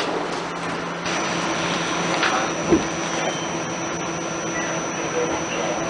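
A train hums along the tracks.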